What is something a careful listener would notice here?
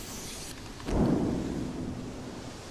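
A hissing burst of smoke goes off close by.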